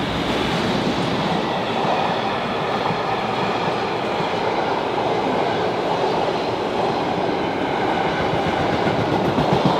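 A long freight train rushes past close by with a loud rattling roar.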